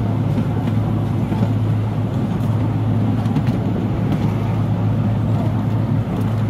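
A small train engine hums steadily as it pulls carriages along.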